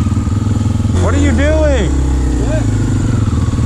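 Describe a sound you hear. Another dirt bike engine revs up and down nearby.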